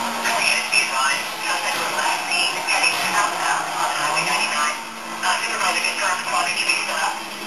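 A racing car engine roars and revs through a television speaker.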